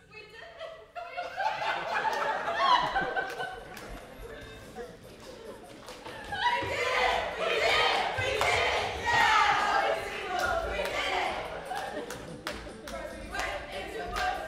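Two young women sing together on a stage in a large hall.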